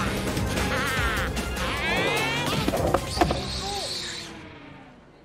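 Skateboard wheels rumble across a hard floor.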